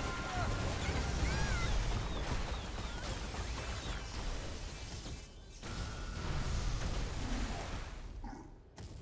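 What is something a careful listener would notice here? Magic blasts boom and whoosh.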